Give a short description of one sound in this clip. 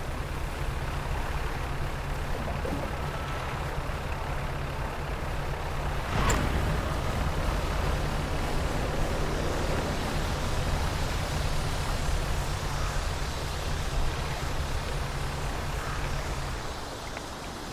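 A boat engine chugs with a low, steady hum.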